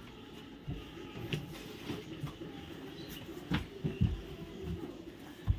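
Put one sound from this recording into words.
Soft knocks and thumps of people moving about on a bed.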